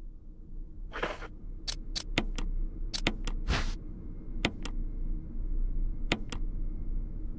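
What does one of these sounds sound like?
A menu cursor beeps in short ticks.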